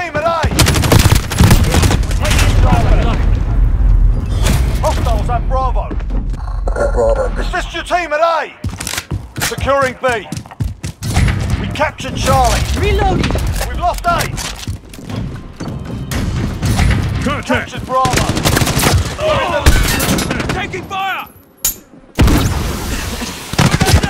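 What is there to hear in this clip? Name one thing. Rapid gunfire cracks in short bursts.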